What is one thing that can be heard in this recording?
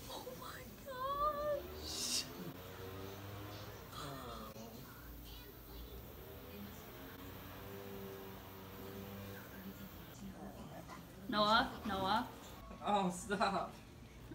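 A monkey gives short high-pitched squeaks.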